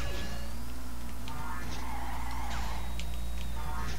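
A racing game's kart boost roars in a short whoosh.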